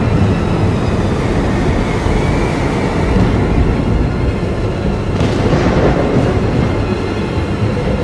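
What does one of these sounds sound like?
Strong wind roars steadily outdoors in a blizzard.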